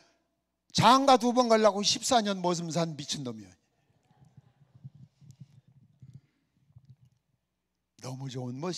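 A middle-aged man speaks with animation into a microphone in a large echoing hall.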